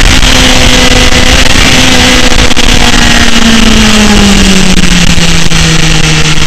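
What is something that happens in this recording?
A motorcycle engine roars close by, its pitch slowly dropping.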